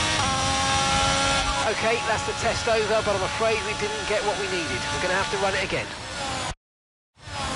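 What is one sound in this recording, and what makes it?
A racing car engine whines at high revs.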